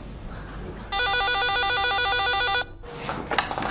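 A telephone rings electronically.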